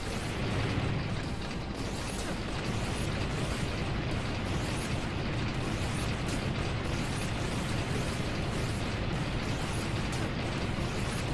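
Explosions boom and crackle repeatedly.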